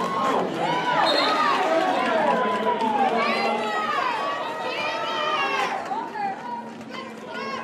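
Roller skate wheels squeal sharply as skaters turn and push.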